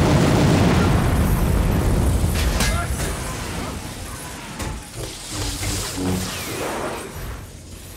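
Metal clanks and thuds as a large machine is struck.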